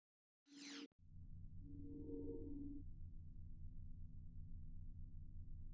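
Low, pulsing electronic music plays steadily.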